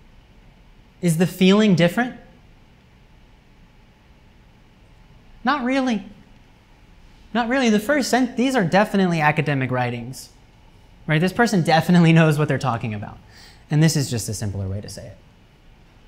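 A man speaks calmly to a room, heard through a microphone.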